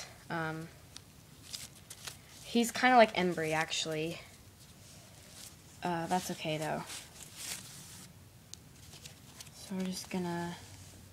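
Fabric rustles softly as clothing is handled.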